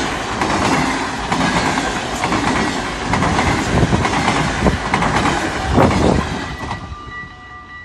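A train rushes past loudly, wheels rumbling and clattering on the rails.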